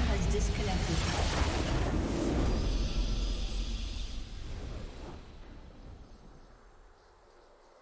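A triumphant game fanfare swells and then fades.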